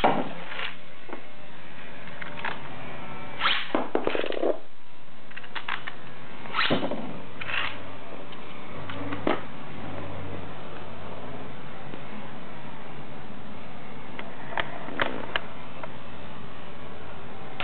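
A spinning top whirs and scrapes across a plastic dish.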